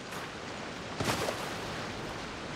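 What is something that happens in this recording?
Water splashes loudly as something lands in it.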